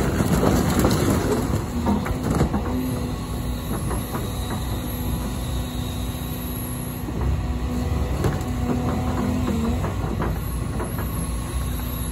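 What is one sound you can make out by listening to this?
An excavator engine rumbles and whines steadily nearby.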